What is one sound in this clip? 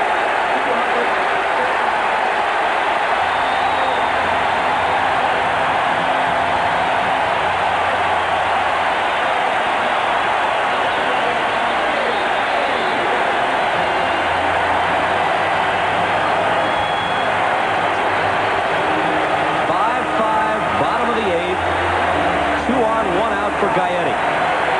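A large crowd roars and cheers steadily in a big stadium.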